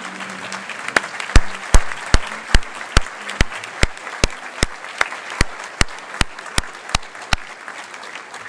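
A man claps his hands close by.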